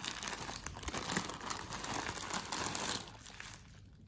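A plastic mailer bag rustles and crinkles as hands pull it open.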